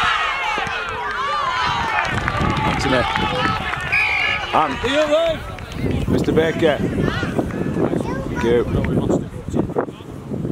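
Spectators cheer and shout outdoors.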